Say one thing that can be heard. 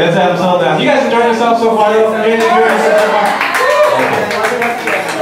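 A man sings loudly through a microphone and loudspeaker.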